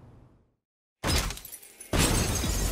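Glass shatters with a loud crash.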